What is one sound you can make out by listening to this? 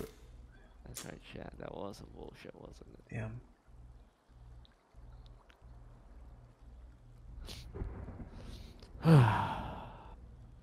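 A man speaks casually and close to a microphone.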